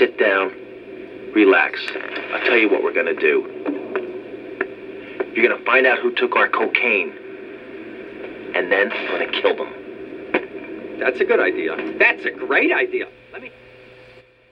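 A man talks with animation through a small, tinny loudspeaker.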